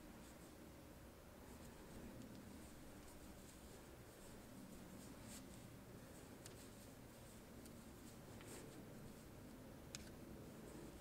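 Wooden knitting needles click softly against each other.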